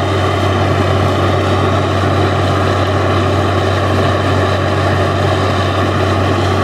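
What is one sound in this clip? A drilling rig's diesel engine drones loudly and steadily outdoors.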